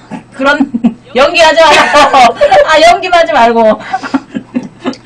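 Two young women laugh loudly together.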